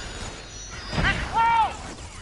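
A heavy blast booms once.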